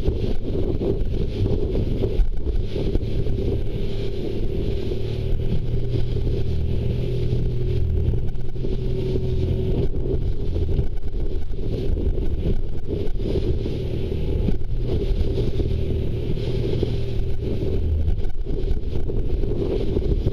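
Water rushes and splashes against a fast-moving sailing boat's hull.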